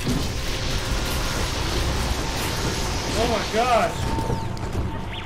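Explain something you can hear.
A beam weapon crackles and roars steadily.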